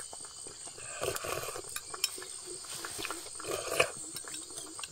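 A boy slurps noodles.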